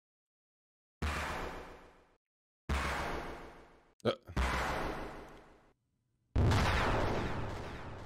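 Loud cracking bursts boom out one after another, each fading away.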